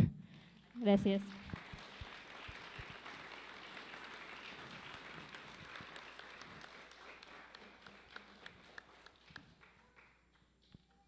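A small audience applauds in a room, then the clapping fades out.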